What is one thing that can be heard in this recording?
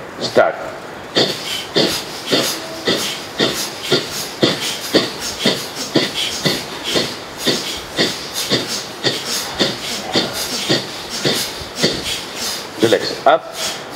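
A man breathes out sharply through his nose in a fast, steady rhythm.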